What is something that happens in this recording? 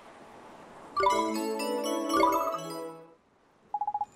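A bright, cheerful musical jingle plays and then stops.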